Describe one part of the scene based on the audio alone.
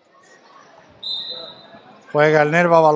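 A referee's whistle blows a short, shrill blast.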